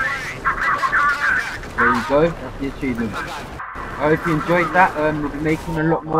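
Gunshots crack and bullets ricochet nearby.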